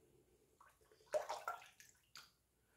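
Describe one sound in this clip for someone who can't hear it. Water splashes as a man rinses his face.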